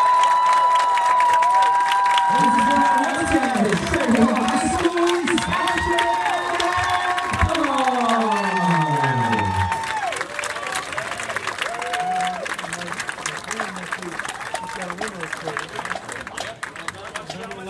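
Drums tap softly in a marching band.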